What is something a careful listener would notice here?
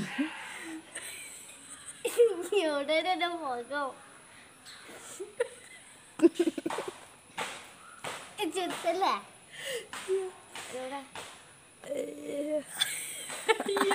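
A second young woman giggles and laughs close by.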